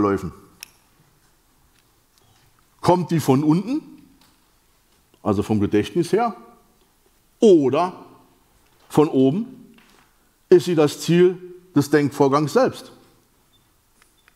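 A middle-aged man lectures with animation through a microphone, speaking in short bursts with pauses.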